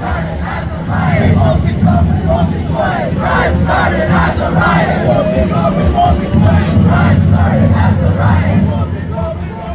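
A crowd of young men and women chants loudly in unison.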